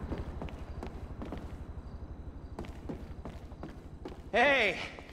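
Footsteps climb wooden stairs.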